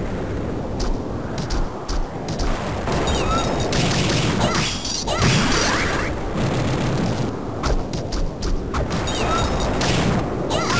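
Sword slashes swish in quick bursts.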